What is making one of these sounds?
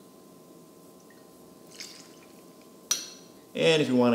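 A metal spoon clinks in a cup.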